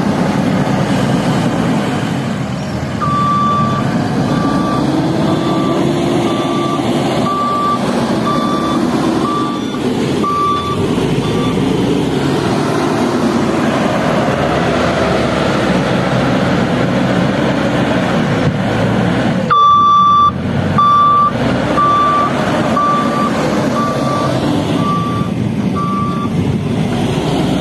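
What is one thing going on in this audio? A loader's diesel engine rumbles and roars steadily nearby.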